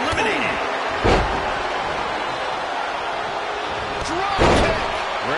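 Heavy thuds of bodies slamming onto a wrestling mat.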